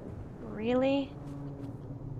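A young woman speaks close to a headset microphone.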